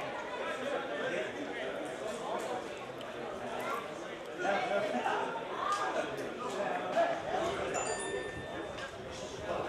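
Several men talk and call out to each other outdoors.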